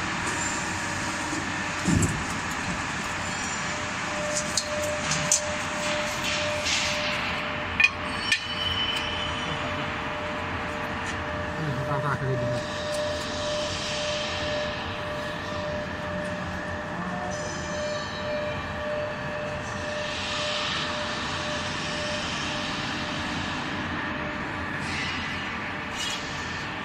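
A machine hums steadily.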